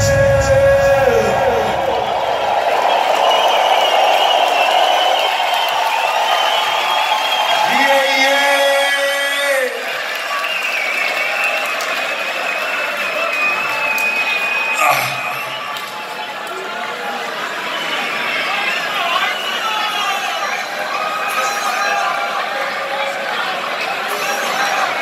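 Live music plays loudly through big speakers in a large echoing arena.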